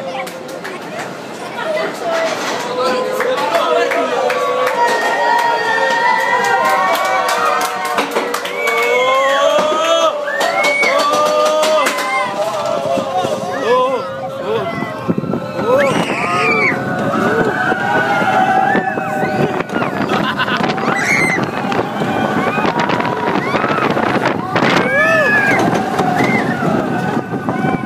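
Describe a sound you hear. Passengers on a roller coaster scream and shout.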